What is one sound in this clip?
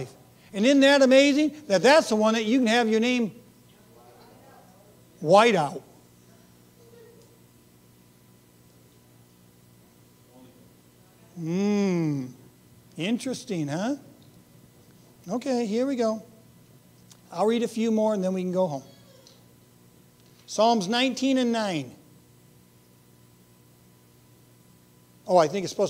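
A middle-aged man speaks with animation into a microphone, in short bursts with long pauses.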